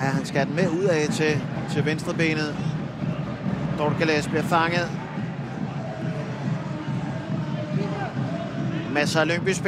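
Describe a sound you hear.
A stadium crowd murmurs and chants steadily.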